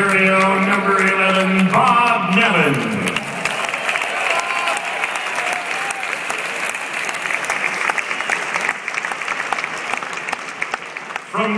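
A large crowd cheers and applauds in a huge echoing arena.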